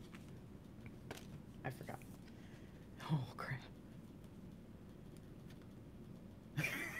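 Playing cards rustle and tap softly in a hand.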